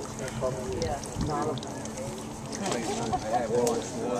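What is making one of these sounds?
Water splashes in a plastic basket as a fish thrashes.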